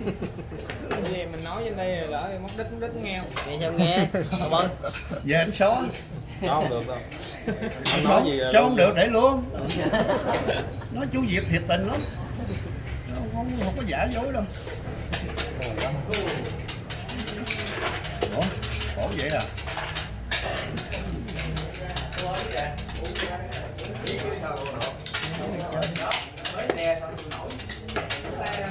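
Elderly men talk calmly close by.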